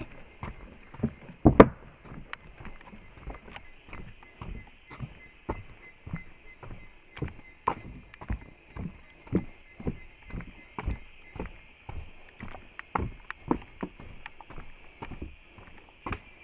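Footsteps thud on a wooden boardwalk at a steady walking pace.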